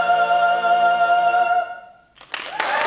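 A choir holds a final sung chord in a large echoing hall.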